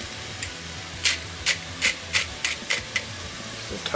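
Chopped pieces drop into a pot with light taps.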